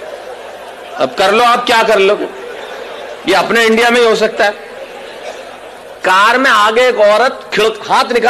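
A young man speaks forcefully into a microphone over loudspeakers, in bursts with pauses.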